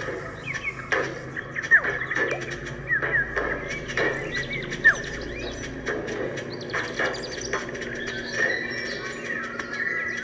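A handheld game plays chirping, bubbly sound effects through a small speaker.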